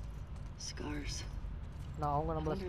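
A second young woman answers briefly in a low voice.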